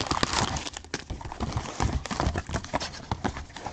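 Foil packs rustle and crinkle as fingers pull them from a box.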